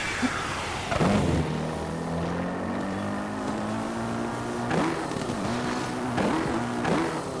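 A motorbike engine runs with a steady hum, revving now and then.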